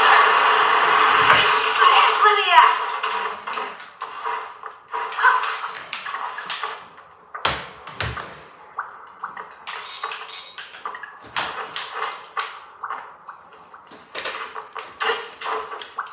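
Video game music plays through a television speaker.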